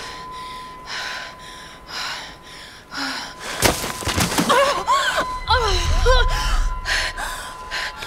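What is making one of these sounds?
A young woman groans and gasps in pain close by.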